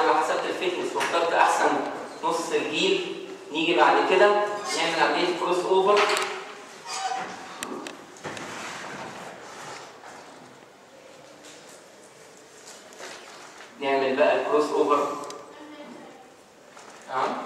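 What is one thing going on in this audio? A man lectures through a microphone in an echoing room.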